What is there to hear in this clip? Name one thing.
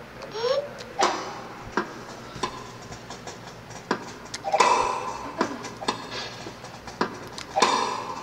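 A tennis ball is struck back and forth with sharp pops, heard through a television speaker.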